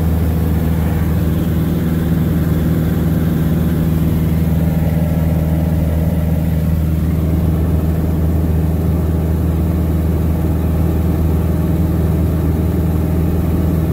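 A small plane's propeller engine drones loudly and steadily.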